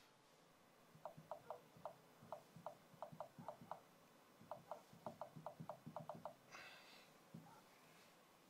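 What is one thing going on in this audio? Soft taps on a touch keyboard click in quick succession.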